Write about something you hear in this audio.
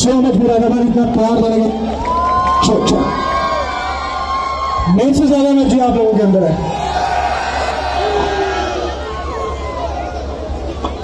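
A young man sings loudly into a microphone through a loudspeaker system.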